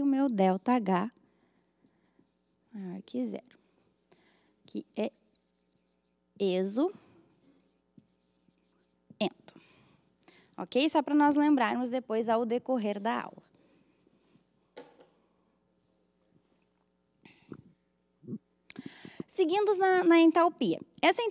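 A young woman speaks clearly into a microphone, with pauses.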